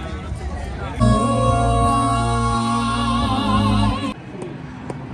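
A singer performs with music over loud speakers.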